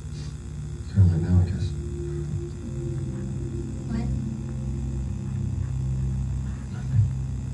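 Orchestral music plays through a television speaker.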